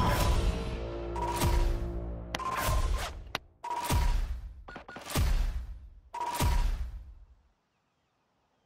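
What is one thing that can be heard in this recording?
Video game sound effects boom and chime as scores are tallied, one after another.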